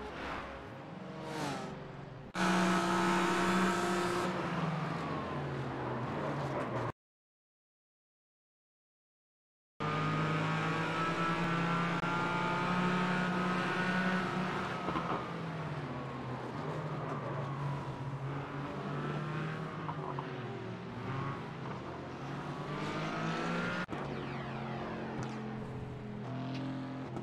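A racing car engine roars loudly, rising and dropping in pitch as it shifts gears.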